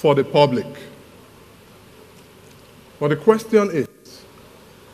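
A man speaks with emphasis through a microphone, pausing between phrases.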